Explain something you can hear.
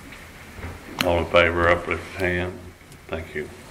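A man speaks at a distance in a quiet room.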